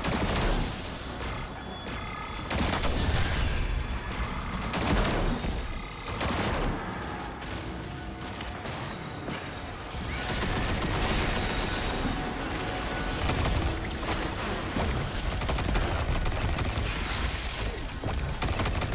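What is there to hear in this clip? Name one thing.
Guns fire in rapid bursts with sharp blasts.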